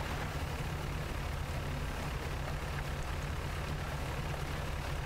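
Ocean waves wash and splash around a sailing ship.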